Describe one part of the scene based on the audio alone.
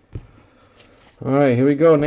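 Trading cards riffle as they are shuffled by hand.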